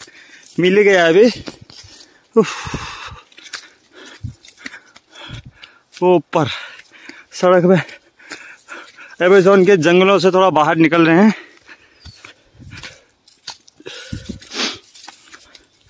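Footsteps crunch and rustle through dry leaves and twigs.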